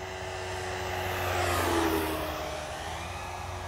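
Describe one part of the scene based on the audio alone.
A small propeller plane roars past close by and its pitch drops as it goes.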